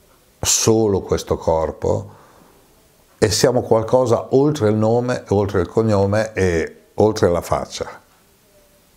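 An elderly man speaks animatedly into a close microphone.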